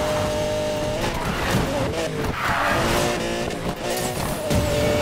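Tyres screech as a car drifts.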